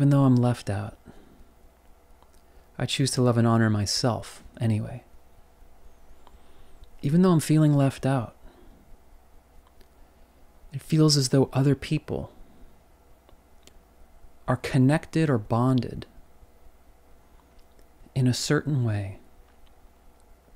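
An adult man speaks calmly, close to the microphone, in short phrases with pauses.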